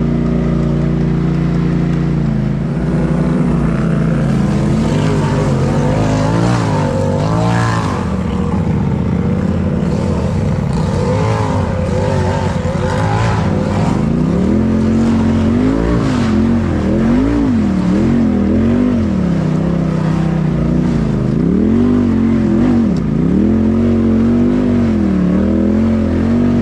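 An off-road vehicle's engine revs up and down close by.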